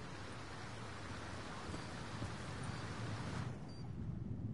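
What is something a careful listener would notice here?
A waterfall roars with rushing water.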